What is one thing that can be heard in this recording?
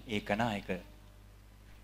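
A young man sings into a microphone.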